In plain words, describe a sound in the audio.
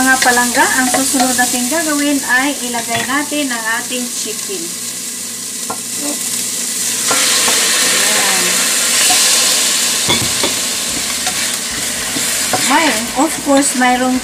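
A wooden spoon scrapes and stirs in a pan.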